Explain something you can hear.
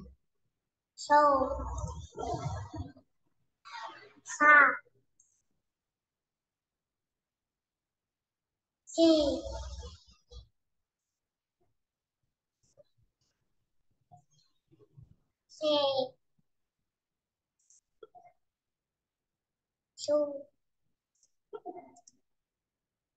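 A young girl reads out syllables over an online call.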